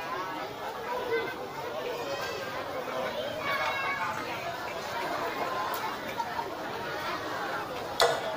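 A woman sings through a microphone and loudspeakers.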